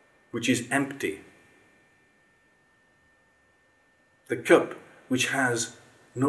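A middle-aged man speaks calmly and close by, pausing between phrases.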